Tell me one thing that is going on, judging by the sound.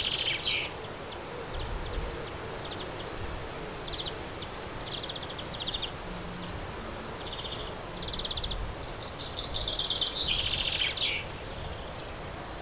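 Small birds chirp and twitter in short, quick bursts nearby.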